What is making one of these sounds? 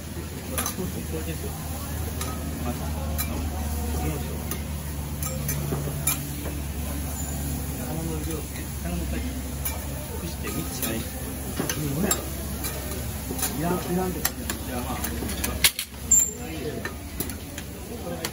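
Metal spatulas scrape and clink on a hot griddle.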